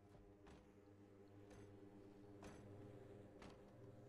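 A refrigerator door opens.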